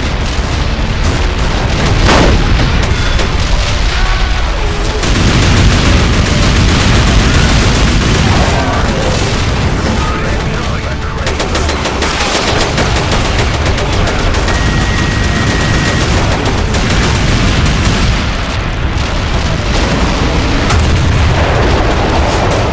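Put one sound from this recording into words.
Explosions boom and crack nearby.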